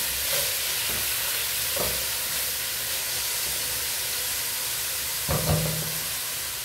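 A spoon scrapes and stirs in a pot.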